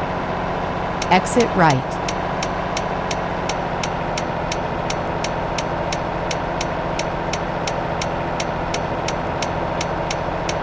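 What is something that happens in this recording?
A truck's turn signal ticks in a video game.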